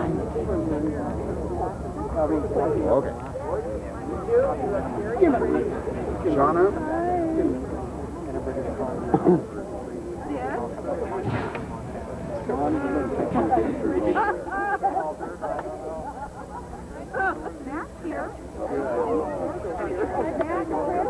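A crowd of men and women chat outdoors, close by.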